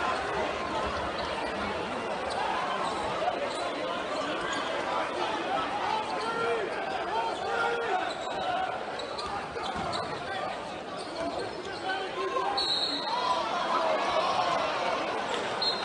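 Basketball shoes squeak on the court.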